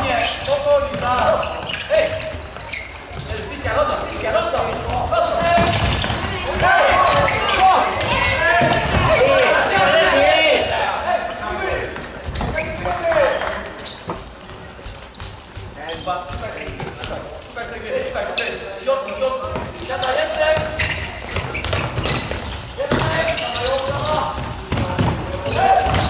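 Players' shoes squeak sharply on a hard court in a large echoing hall.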